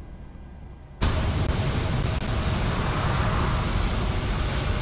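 A jet engine roars steadily close by.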